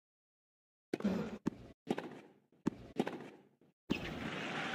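A tennis ball is struck hard by a racket.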